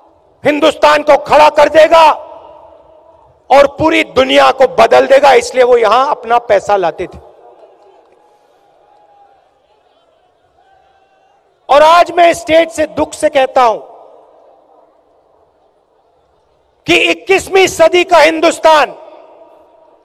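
A man speaks forcefully into a microphone over loudspeakers, echoing outdoors.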